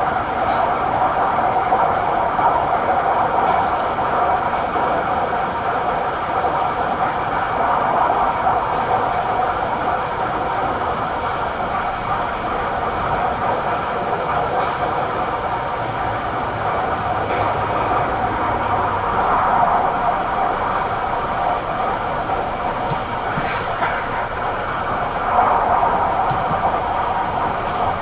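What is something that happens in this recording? A diesel truck engine runs as the truck rolls slowly to a stop.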